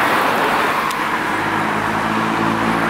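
A bus engine rumbles as the bus approaches.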